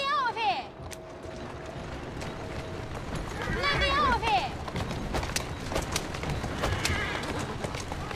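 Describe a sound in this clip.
Carriage wheels rumble over cobblestones.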